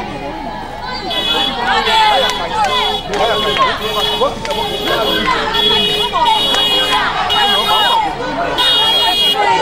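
A crowd of men shout and talk excitedly close by, outdoors.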